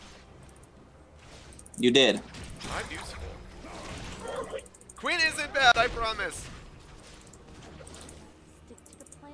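Magic blasts and sword hits crackle and clash in a fantasy game battle.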